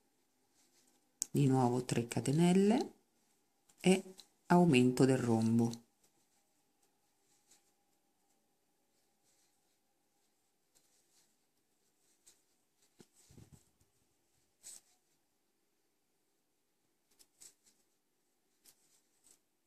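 A crochet hook softly clicks and pulls through yarn.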